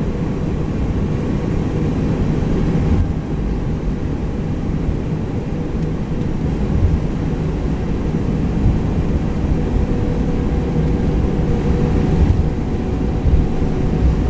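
Jet engines rumble steadily as an airliner rolls down a runway.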